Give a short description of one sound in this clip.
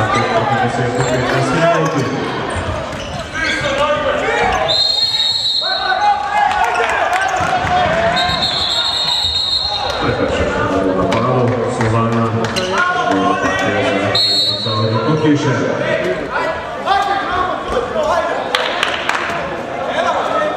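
Sneakers squeak on a hard court floor in a large echoing hall.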